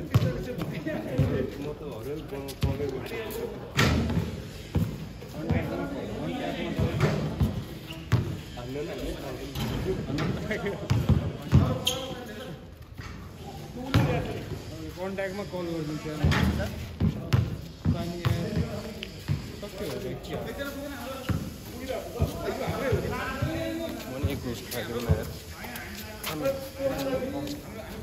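A basketball bounces on hard ground outdoors.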